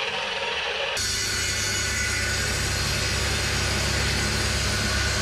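A wood planer roars steadily.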